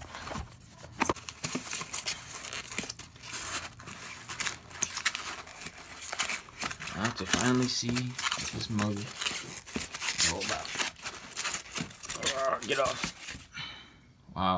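Foam packing pieces rustle and squeak as a hand digs through them.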